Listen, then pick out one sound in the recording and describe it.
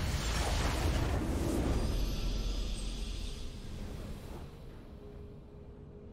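A rising fanfare plays for a game victory.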